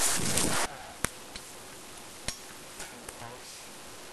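Dry sticks snap and knock together.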